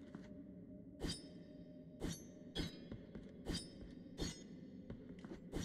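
Footsteps tap on stone in a quick, even rhythm.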